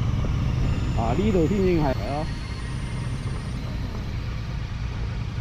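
A motorcycle engine rumbles low and steady.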